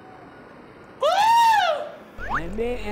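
A young man whoops in a rising and falling cry.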